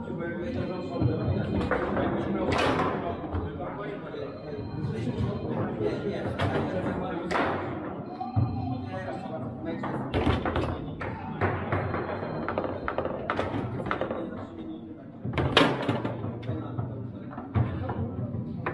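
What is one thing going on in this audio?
A foosball ball cracks sharply against the table walls and goals.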